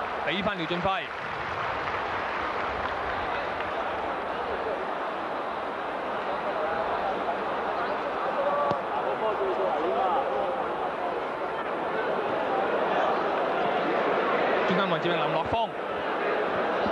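A large stadium crowd roars and murmurs steadily.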